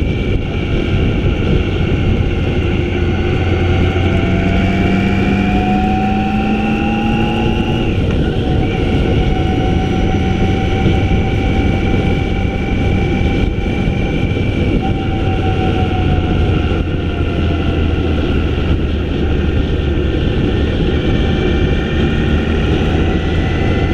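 A motorcycle engine hums steadily at speed, its pitch rising and falling gently.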